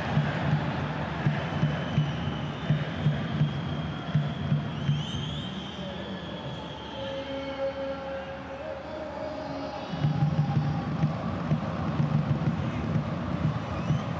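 A large stadium crowd chants loudly and steadily.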